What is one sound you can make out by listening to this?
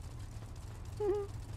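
A phone gives a short chime.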